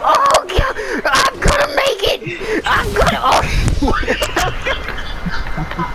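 A car crashes and explodes with a loud boom.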